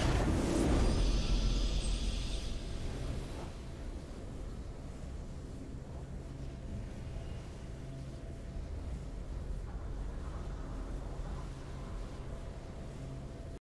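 A triumphant game fanfare plays softly.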